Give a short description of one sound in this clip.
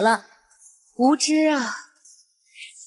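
A second young woman speaks sharply.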